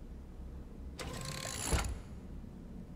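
A mechanical arm whirs as it lowers a console.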